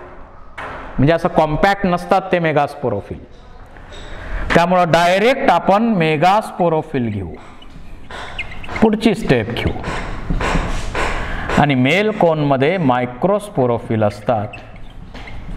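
A man speaks calmly and clearly, close by, in a slightly echoing room.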